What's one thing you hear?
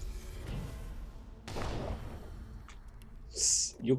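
A magic spell whooshes and crackles.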